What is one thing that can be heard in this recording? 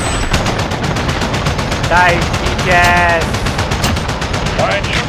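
Rapid gunfire rattles in quick, steady bursts.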